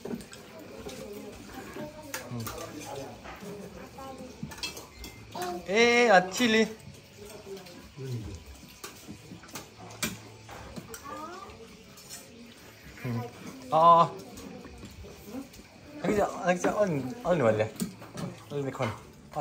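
Spoons clink against plates.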